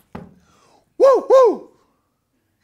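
An elderly man gives two short, loud whooping cries.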